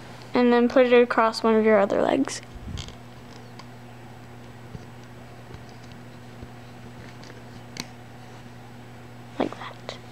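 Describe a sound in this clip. Small rubber bands stretch and click softly against plastic pegs.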